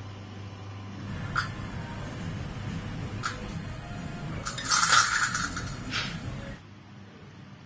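A liquid hisses and crackles violently as drops fall into it.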